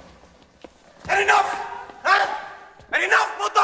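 A young man shouts angrily at close range.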